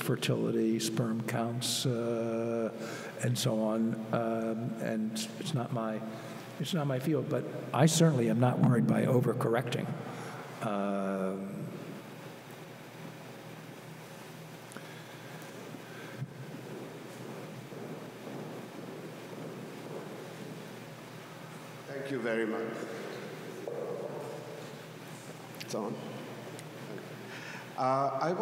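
An elderly man speaks calmly into a microphone, heard over a loudspeaker in a large room.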